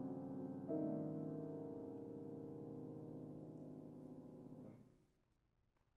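A piano plays a sustained chord that rings out in a large hall and fades.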